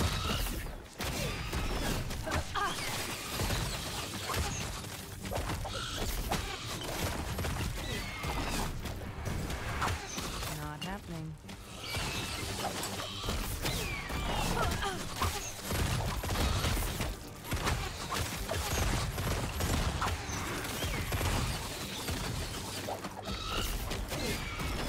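Spell blasts and impacts crash and boom in quick succession.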